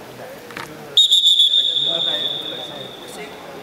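A referee blows a sharp, shrill whistle in an echoing hall.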